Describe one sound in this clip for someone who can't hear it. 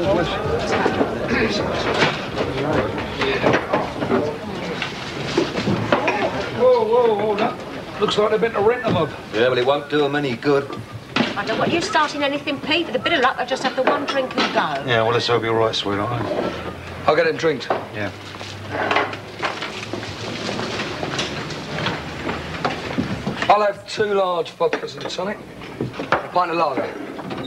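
A man speaks loudly to the people around him.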